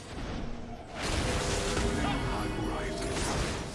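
Spell effects crackle and clash in a fight.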